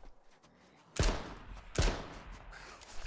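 Gunshots ring out in a quick burst.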